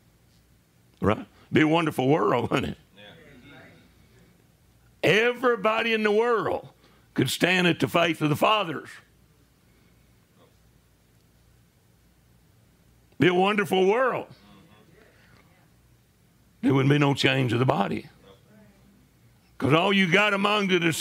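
An elderly man preaches forcefully into a microphone in bursts, with pauses between phrases.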